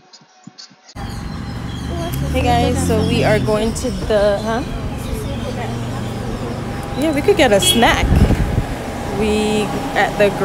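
A crowd of adult men and women chatters nearby in a busy indoor space.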